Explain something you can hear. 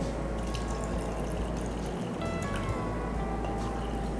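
Milk pours into a jar.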